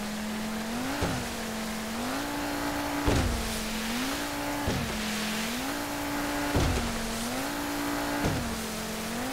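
A boat thumps on waves.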